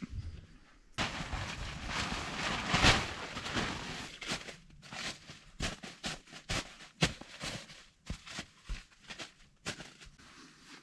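Tent fabric rustles and crinkles as a person moves about.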